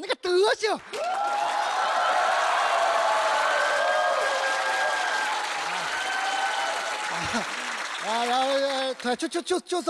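An audience laughs and cheers loudly.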